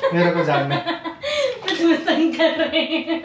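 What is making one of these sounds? A young woman answers with a laugh, close by.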